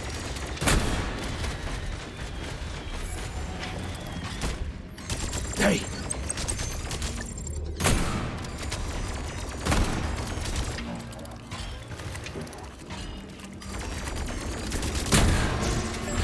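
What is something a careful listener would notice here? Gunshots ring out sharply, a few seconds apart.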